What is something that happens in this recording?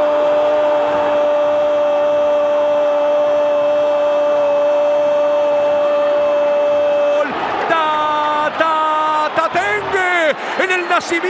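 A large crowd cheers and chants in a stadium.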